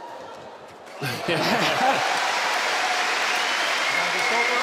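A large crowd cheers and applauds loudly in an echoing hall.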